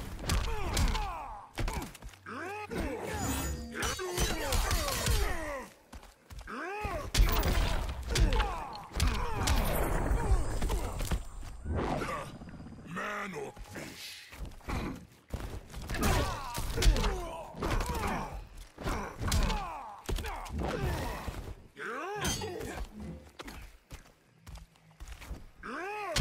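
Punches and kicks land with heavy thuds in quick bursts.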